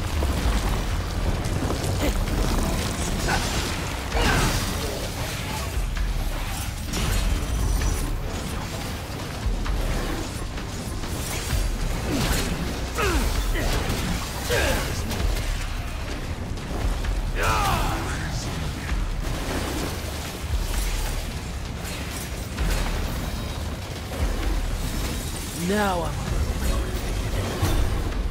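Swords slash and clang in rapid hits.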